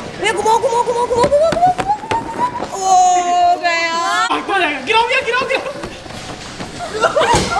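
Footsteps thump on a padded beam.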